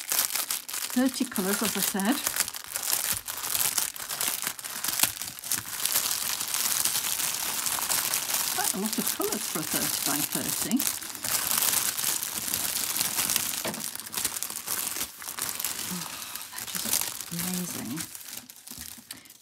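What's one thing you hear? Plastic bags crinkle and rustle up close.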